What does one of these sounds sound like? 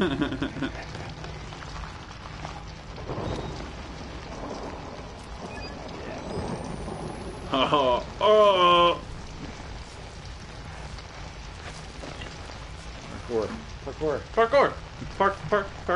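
A young man exclaims and talks with animation close to a microphone.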